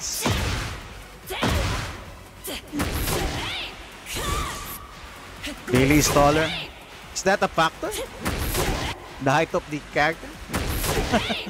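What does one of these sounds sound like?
Punches and kicks land with heavy, booming thuds.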